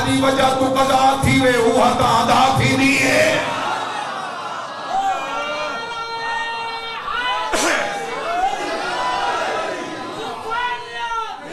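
A man speaks forcefully and with passion into a microphone, heard through loudspeakers in an echoing space.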